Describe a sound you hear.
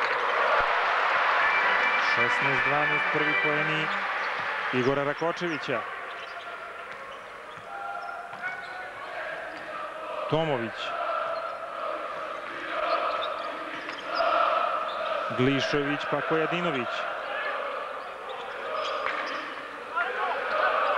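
A large crowd roars and chants in an echoing arena.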